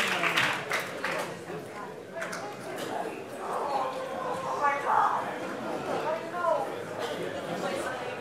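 People in a crowd chatter and murmur.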